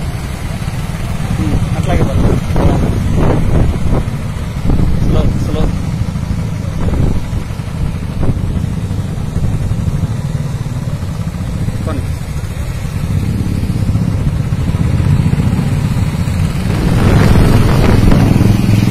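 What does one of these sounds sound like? Several motorcycle engines rumble steadily as they ride past close by.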